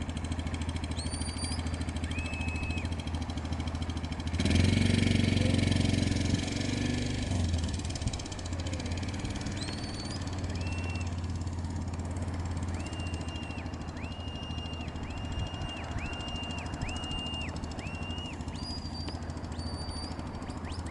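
A quad bike engine hums steadily outdoors and briefly revs louder.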